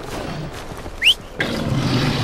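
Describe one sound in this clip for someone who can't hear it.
An arrow is shot from a bow with a sharp twang.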